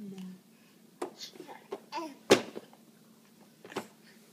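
A baby laughs in short bursts close by.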